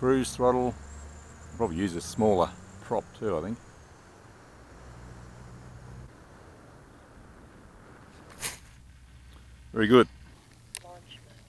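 Wind buffets and rumbles across the microphone.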